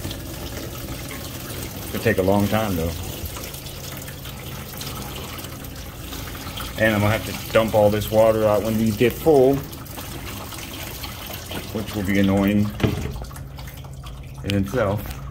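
Water spills over a basin's edge and splashes steadily onto a hard floor.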